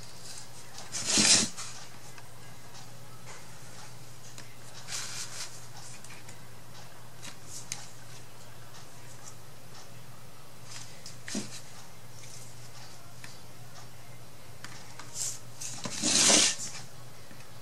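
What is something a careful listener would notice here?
Small objects tap and clatter on a tabletop.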